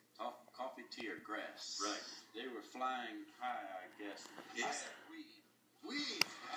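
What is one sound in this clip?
A man speaks calmly into a microphone, heard through a television loudspeaker.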